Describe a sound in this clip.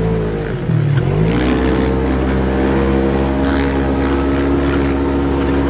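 An engine roars steadily, shifting pitch as the vehicle drives over sand.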